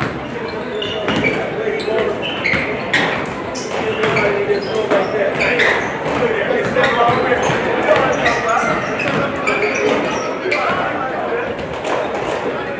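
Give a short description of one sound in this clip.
Basketballs bounce on a hardwood court, echoing in a large hall.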